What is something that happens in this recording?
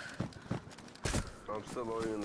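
A heavy thud sounds as someone lands from a jump.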